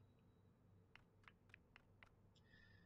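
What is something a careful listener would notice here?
Footsteps patter softly on a wooden floor.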